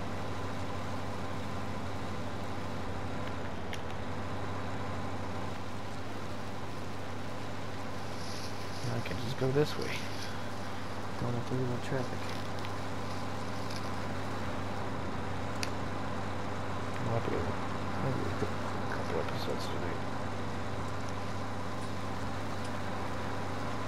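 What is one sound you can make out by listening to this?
A harvester engine hums steadily at low speed.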